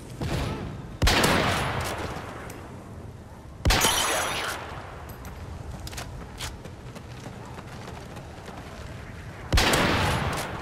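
A rifle fires loud shots that boom and echo away.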